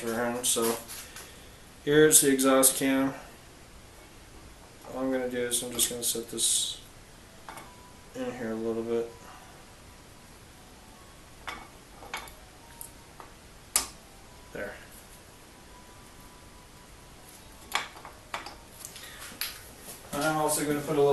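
Metal parts click and clink as they are handled.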